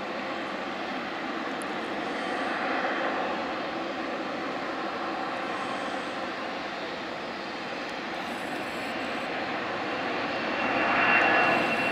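A jet engine roars loudly and steadily, swelling toward the end.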